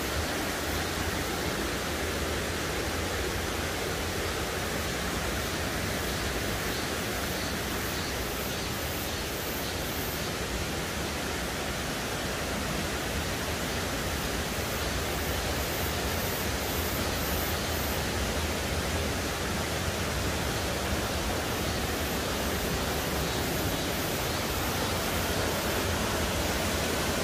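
A mountain stream rushes steadily over rocks outdoors.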